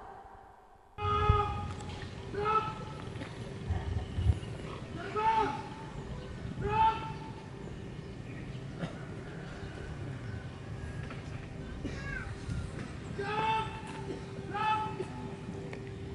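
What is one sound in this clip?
A man shouts drill commands loudly outdoors.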